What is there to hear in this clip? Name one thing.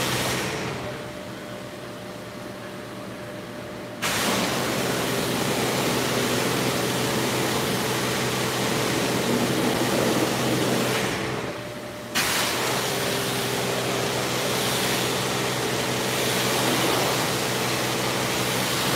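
High-pressure water jets hiss and spray loudly in an echoing hall.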